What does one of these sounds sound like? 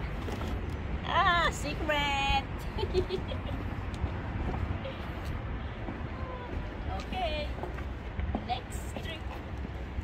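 A young woman speaks and laughs close by with animation.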